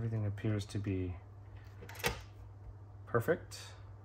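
A screwdriver is set down on a wooden table with a light knock.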